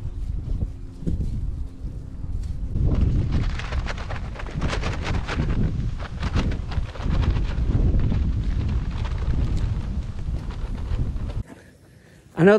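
Wind blusters loudly across the microphone outdoors.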